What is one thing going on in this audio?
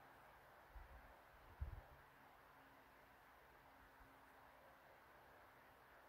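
A brush softly strokes across paper.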